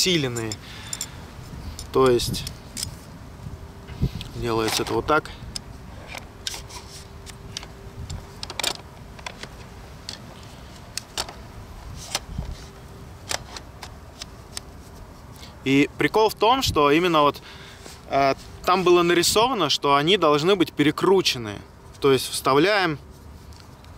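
Metal poles click and rattle as they are handled.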